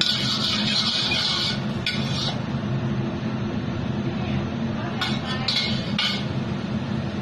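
A metal spatula scrapes against a wok.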